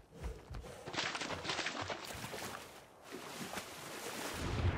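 Water splashes as a creature swims.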